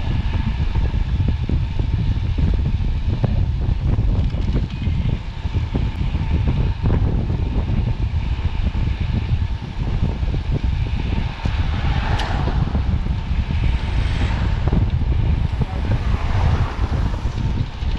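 Strong wind rushes and buffets loudly past.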